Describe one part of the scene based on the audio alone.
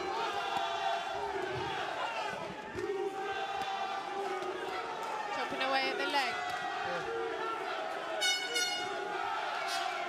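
Punches and kicks thud against bodies.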